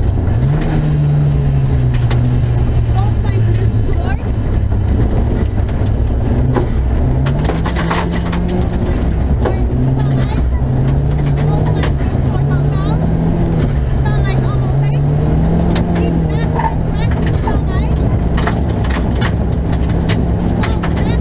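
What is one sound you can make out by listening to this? Gravel and stones rattle against the underside of a car.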